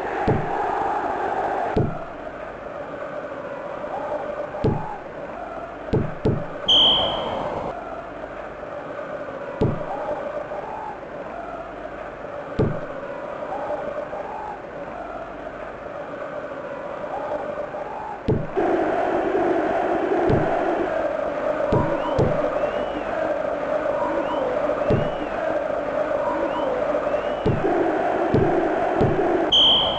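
Ball kicks thud in a 16-bit console football game.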